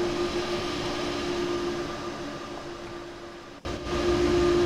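An electric locomotive hums steadily as it passes close by.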